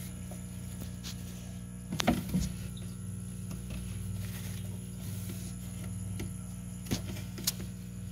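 Paper bedding rustles and crackles as a hand digs through it.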